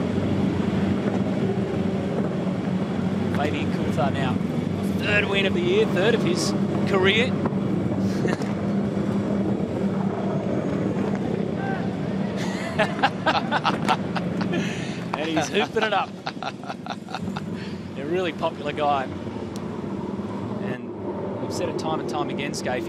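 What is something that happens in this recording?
Race car engines rumble steadily nearby.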